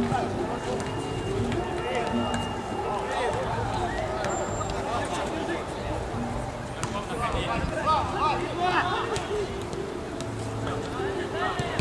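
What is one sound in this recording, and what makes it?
Men call out to each other outdoors.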